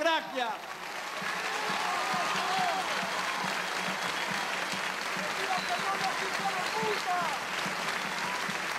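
A large crowd cheers, whistles and chants outdoors.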